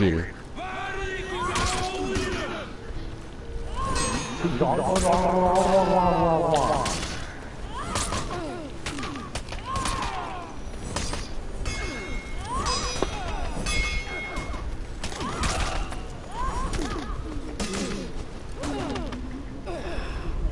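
Warriors grunt and shout as they fight.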